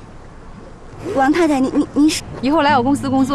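A young woman speaks in a questioning tone, close by.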